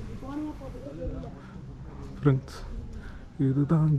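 Footsteps scuff slowly on rough stone.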